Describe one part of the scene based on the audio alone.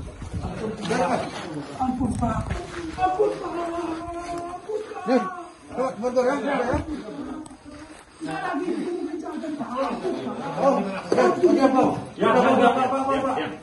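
Bricks and rubble scrape and clatter underfoot.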